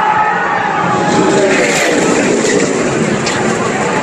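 A race car crashes loudly into a wall.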